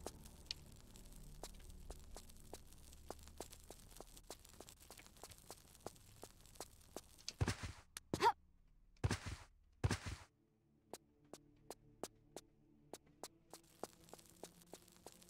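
Quick footsteps run on a stone floor.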